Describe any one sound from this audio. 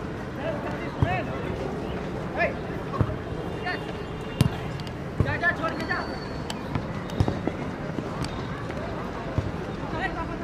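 A football thuds as players kick it.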